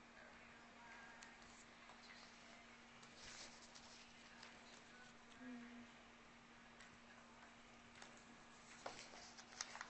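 A young woman talks softly and calmly, close by.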